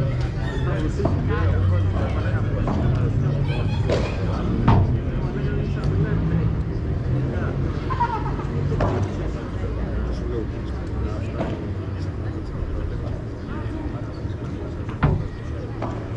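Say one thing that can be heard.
Padel rackets hit a ball with sharp pops.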